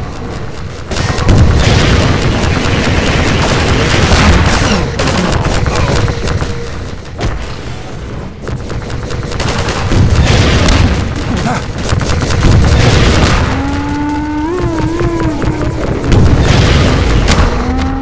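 A rocket launcher fires with loud booming blasts.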